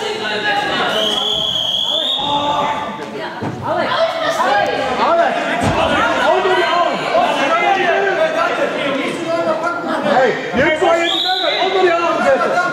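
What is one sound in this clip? A referee blows a whistle with a long, shrill blast.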